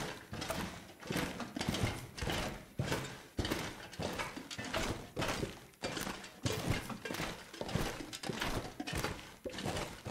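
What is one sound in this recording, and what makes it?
Footsteps crunch steadily over gritty ground in an echoing tunnel.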